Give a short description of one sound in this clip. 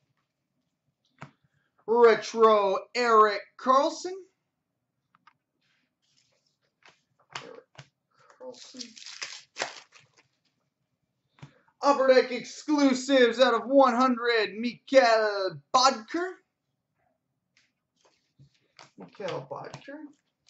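Trading cards rustle and tap softly as they are sorted by hand.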